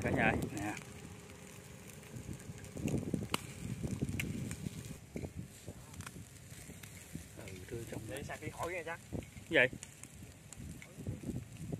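Meat sizzles and crackles over hot embers.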